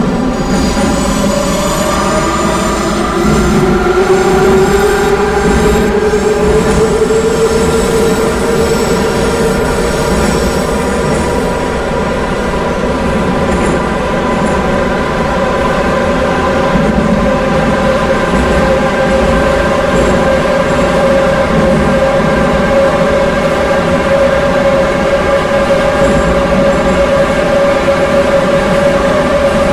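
A train's electric motors whine, rising steadily in pitch as it speeds up.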